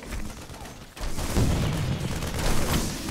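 Rapid gunfire rattles in a fight.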